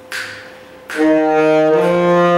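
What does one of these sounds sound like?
A saxophone plays loud, steady notes.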